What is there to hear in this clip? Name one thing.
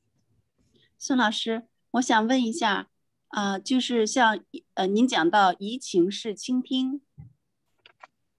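A middle-aged woman speaks calmly into a microphone over an online call.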